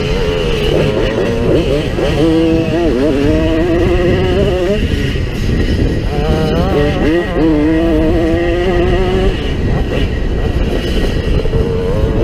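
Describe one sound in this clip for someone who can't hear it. A second motorbike engine buzzes a little way ahead.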